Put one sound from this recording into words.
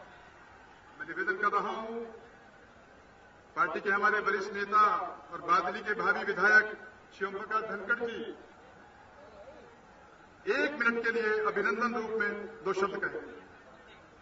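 A man speaks loudly through a loudspeaker in short bursts.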